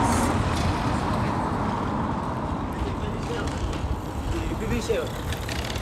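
Bicycles roll past on a paved road.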